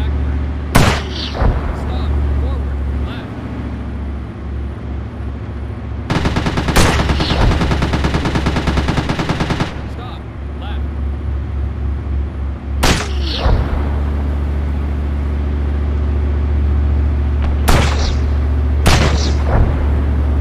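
Loud explosions boom nearby.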